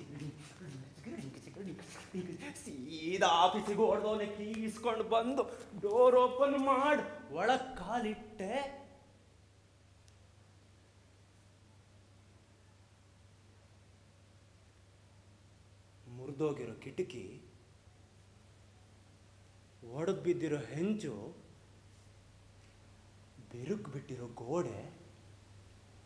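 A young man speaks loudly and with feeling.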